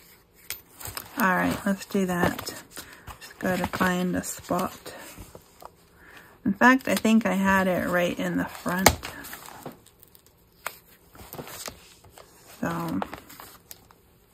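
Paper pages rustle and flap as they are turned.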